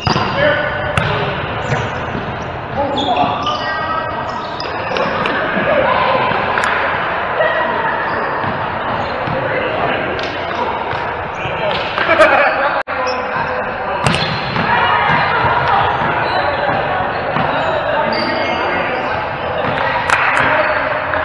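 A volleyball is struck by hand with a sharp slap.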